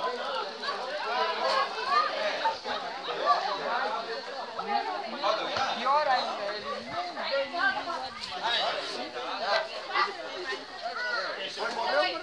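Men and women talk together at a distance outdoors.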